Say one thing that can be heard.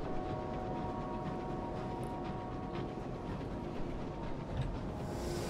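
A submarine's engine hums and rumbles steadily underwater.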